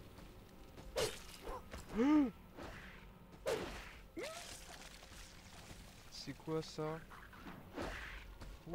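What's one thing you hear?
Monsters screech and growl in a game fight.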